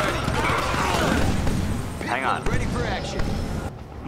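Gunfire rattles in a battle.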